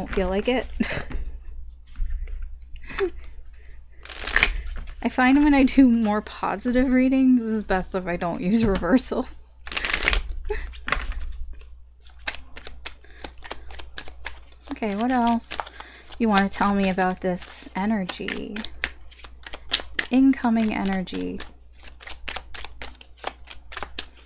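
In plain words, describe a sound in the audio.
Cards riffle and slap as hands shuffle them.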